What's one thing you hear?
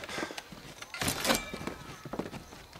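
A knife thuds as it is stabbed into a wooden table.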